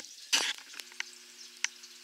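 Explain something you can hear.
A hand knocks against a plastic bucket.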